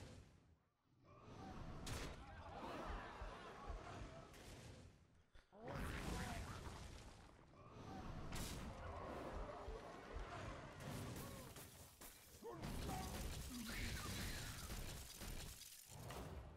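Video game attack sounds thump and crash in bursts.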